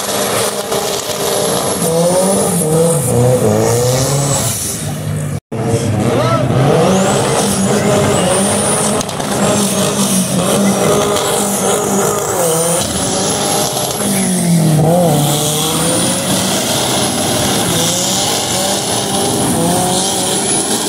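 A small Chevette car engine revs hard while drifting.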